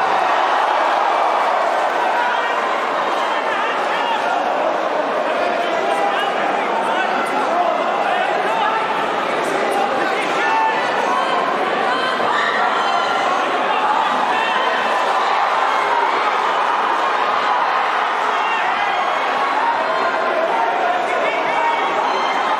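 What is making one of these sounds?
A crowd shouts and cheers in an indoor hall.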